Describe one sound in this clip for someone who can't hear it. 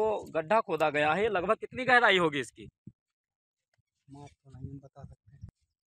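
An elderly man speaks with animation, close to a microphone.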